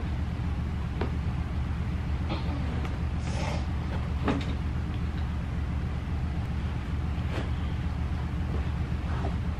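Plastic baskets clatter and knock as they are set in place.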